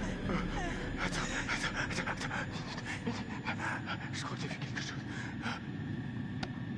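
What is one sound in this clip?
A young man speaks urgently and tensely.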